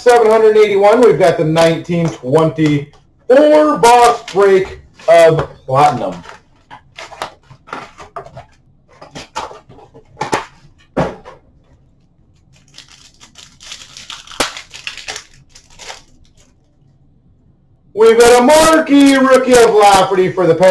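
Small cardboard boxes tap and rustle as hands handle them close by.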